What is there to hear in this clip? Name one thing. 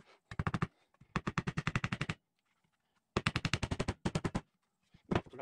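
A hammer taps rapidly on wood in quick bursts.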